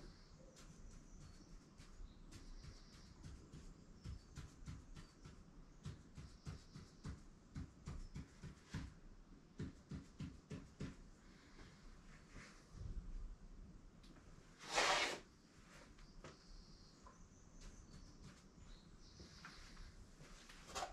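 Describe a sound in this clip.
A marker taps and scratches against a wall in quick short strokes.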